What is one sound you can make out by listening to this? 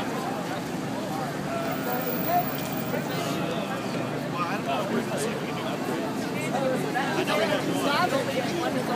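City traffic hums steadily in the background.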